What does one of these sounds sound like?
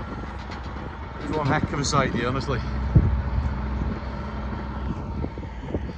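A tracked mulching machine's engine rumbles steadily nearby.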